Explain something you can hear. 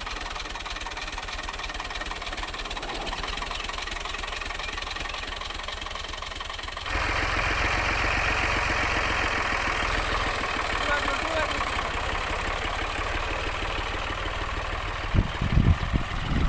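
A tractor diesel engine chugs steadily close by.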